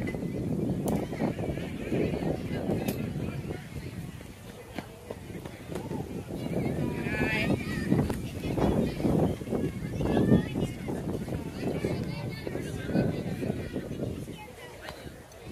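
Children and adults talk and call out nearby, outdoors.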